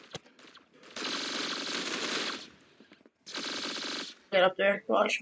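A video game gun fires rapidly in bursts.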